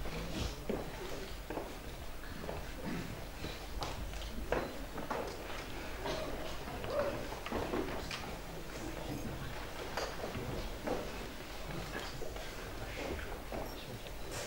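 A man talks to an audience from across a large room.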